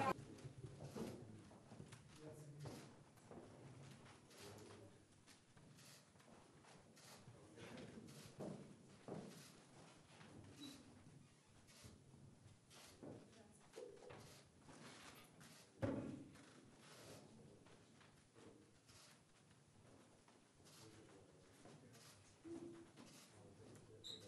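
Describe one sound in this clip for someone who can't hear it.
Young people murmur softly in greeting.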